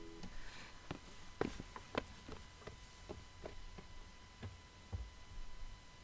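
Footsteps thud and scuff quickly on rock.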